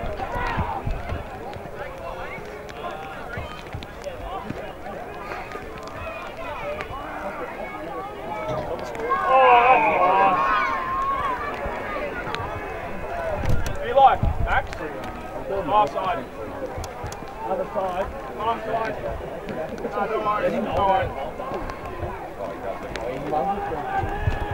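Spectators shout and cheer from a distance outdoors.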